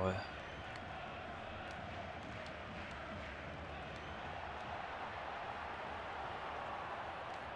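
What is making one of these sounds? A stadium crowd roars steadily in the background.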